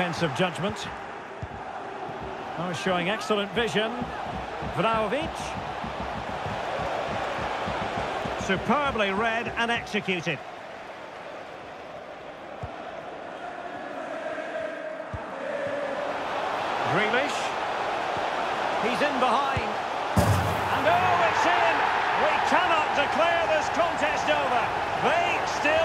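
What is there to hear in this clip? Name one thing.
A large stadium crowd murmurs and roars loudly.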